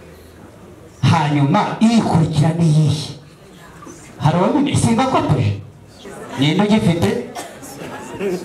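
A man speaks loudly in short bursts with pauses.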